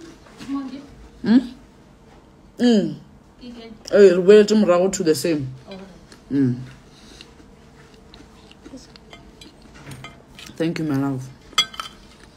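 A woman speaks casually and close up, in short bursts.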